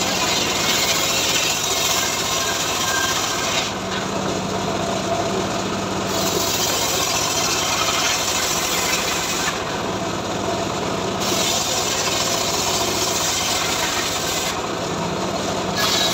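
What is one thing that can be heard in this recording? A sawmill machine runs with a loud steady roar.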